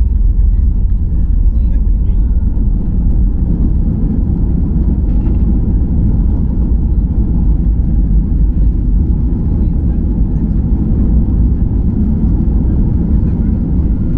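Tyres rumble along a runway.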